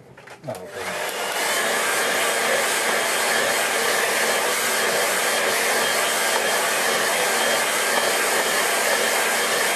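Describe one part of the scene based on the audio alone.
A hair dryer blows loudly with a steady roar.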